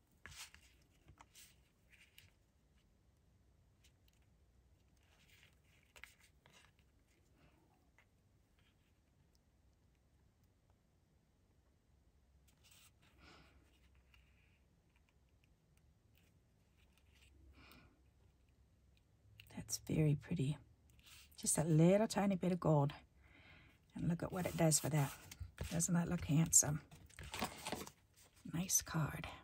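Hands rustle and fold stiff card stock.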